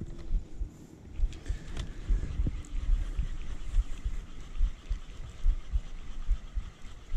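A fishing reel whirs softly as its handle is turned.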